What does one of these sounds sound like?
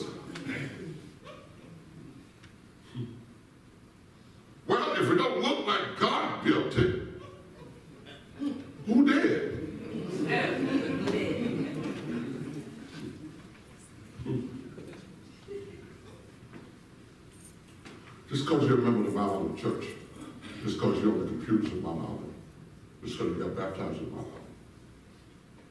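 A man preaches with animation into a microphone in a large echoing hall, speaking in bursts with pauses.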